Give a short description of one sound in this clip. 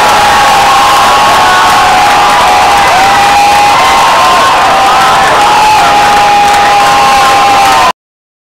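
A large crowd cheers and sings along in a big echoing hall.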